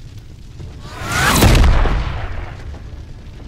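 A deep boom swells and fades.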